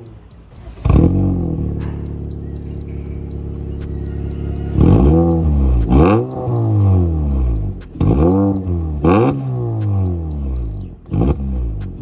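A car engine idles with a deep burble close by.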